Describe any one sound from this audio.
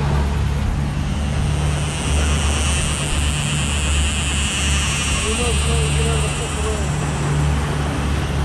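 A fishing reel whirs as line pulls out.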